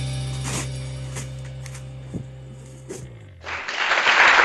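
Small toy drumsticks tap on toy drums.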